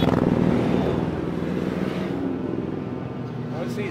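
A motorcycle engine drones as it rides past.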